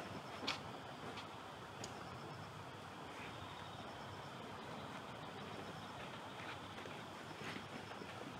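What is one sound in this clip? Footsteps shuffle softly on a mat outdoors.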